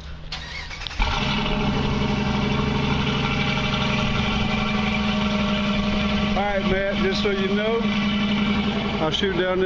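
A car engine starts and idles with a deep, steady rumble from the exhaust.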